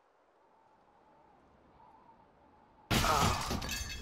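A gunshot rings out sharply.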